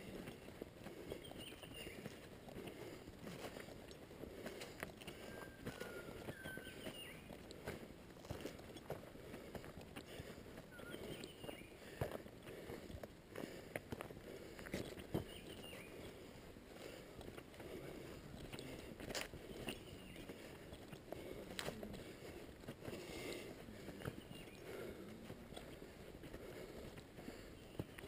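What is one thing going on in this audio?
Footsteps crunch steadily on a grassy dirt track.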